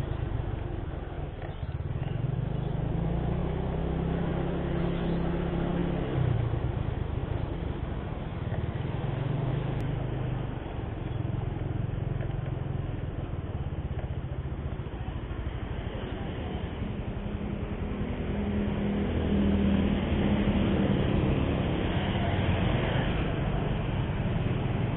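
Wind rushes past a riding motorbike.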